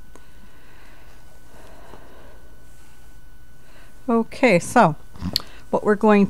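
Yarn rustles softly as it is drawn over a knitting loom's pegs.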